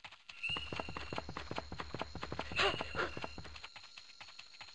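Quick, light footsteps patter across the ground in a game.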